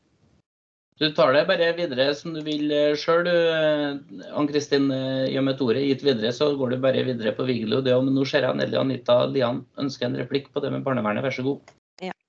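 A man speaks steadily over an online call.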